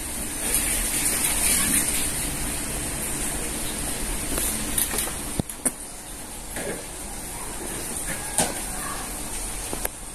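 A plastic sauce bottle squirts and splutters as it is squeezed.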